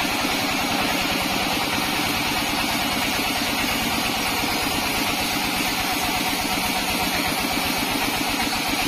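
A band saw cuts through a large log with a steady loud whine.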